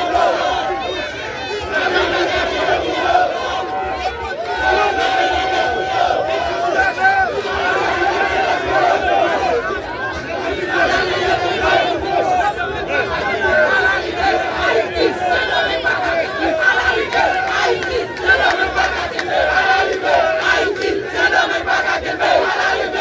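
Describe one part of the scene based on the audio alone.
A large crowd of young men and women shouts and cheers loudly outdoors.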